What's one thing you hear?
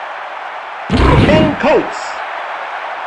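Football players collide in a heavy tackle.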